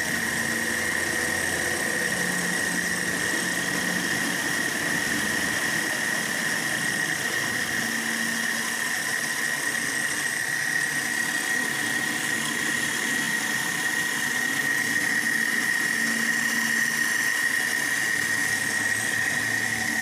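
A cutting tool grinds and whines against spinning metal.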